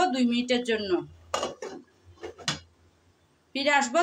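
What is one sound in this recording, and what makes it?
A glass lid clinks onto a metal pot.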